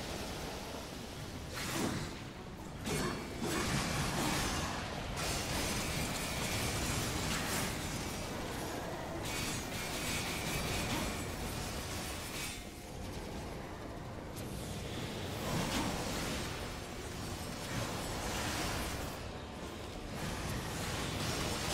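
Blades clash and slash with heavy impacts.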